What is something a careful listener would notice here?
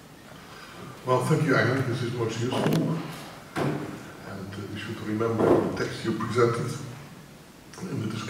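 An elderly man speaks into a microphone over a loudspeaker in a large echoing hall.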